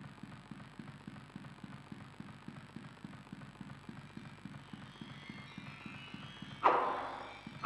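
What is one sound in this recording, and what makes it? Footsteps thud steadily and quickly on hard ground.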